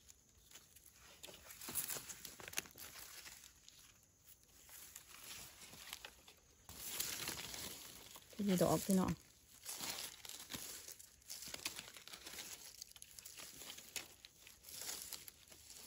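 Dry leaves rustle as hands brush through them.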